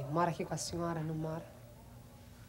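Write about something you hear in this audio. A young woman speaks with feeling.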